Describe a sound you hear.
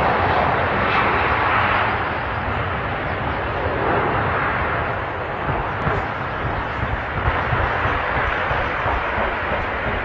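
A jet engine roars loudly and steadily as an airliner takes off.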